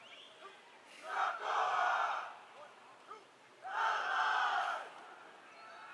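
A man shouts commands loudly outdoors.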